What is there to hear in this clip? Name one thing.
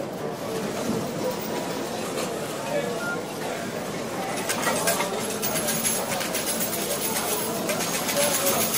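Slot machines chime and jingle steadily.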